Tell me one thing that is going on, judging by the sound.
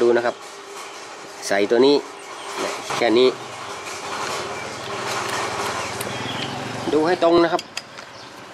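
Small metal parts click and tap as a carburettor is fitted by hand.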